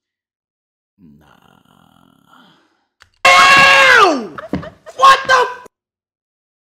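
A young woman laughs loudly.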